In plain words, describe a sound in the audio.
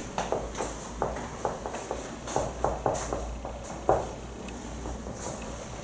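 Footsteps approach on a hard floor.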